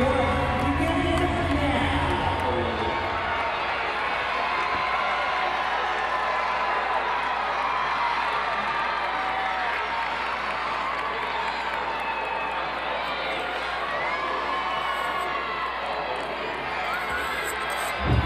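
A large crowd murmurs and chatters in a big echoing arena.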